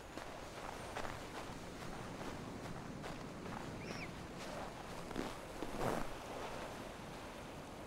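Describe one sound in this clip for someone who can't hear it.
Footsteps run across wooden boards.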